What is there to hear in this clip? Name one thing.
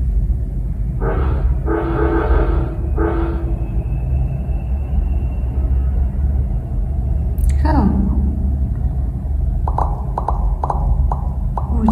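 A video game plays short electronic sound effects.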